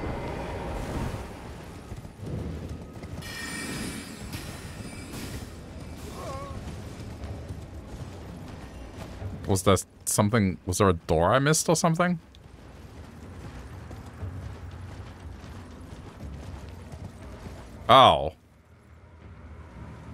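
A horse gallops, hooves thudding on the ground.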